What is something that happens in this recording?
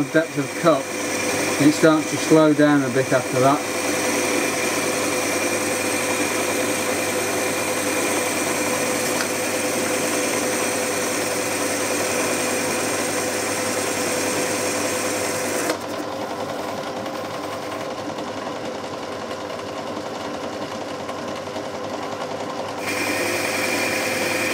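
A cutting tool shaves metal with a steady hiss.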